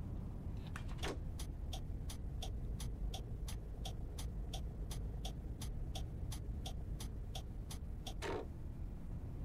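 A turn signal ticks quickly and evenly.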